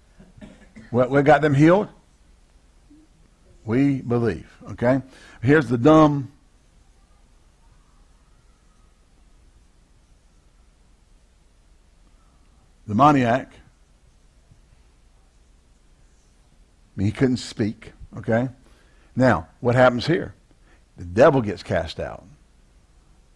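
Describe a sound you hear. A man speaks calmly through a clip-on microphone, in short bursts with pauses.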